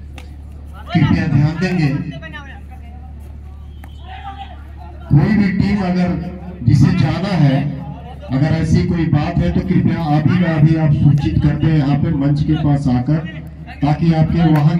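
A young man chants loudly and rapidly, close by.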